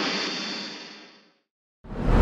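A loud explosion roars and fades away.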